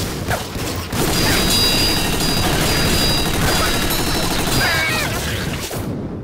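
Gunfire rattles loudly.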